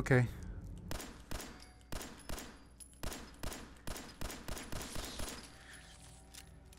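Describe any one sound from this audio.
Pistol shots ring out in quick succession.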